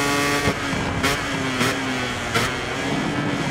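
A motorcycle engine pops and crackles while slowing down.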